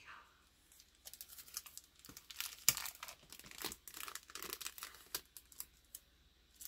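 Plastic comic book sleeves crinkle and rustle as they are handled.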